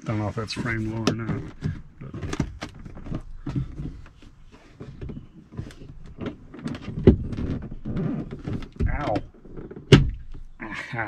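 Plastic trim clicks and knocks as a man works on a car door panel.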